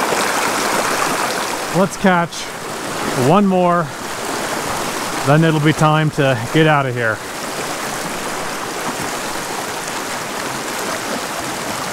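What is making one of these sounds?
A shallow stream rushes and splashes over rocks close by.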